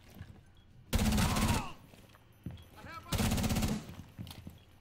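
Gunfire bursts out loudly in short rapid volleys.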